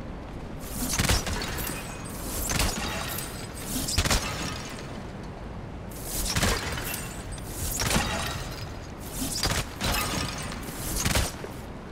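Ice shatters with a bright, tinkling crash.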